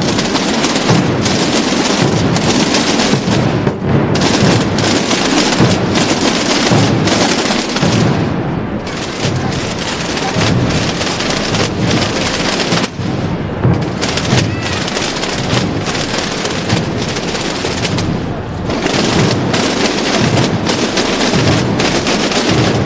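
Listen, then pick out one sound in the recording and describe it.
Drums beat a steady marching rhythm in a procession.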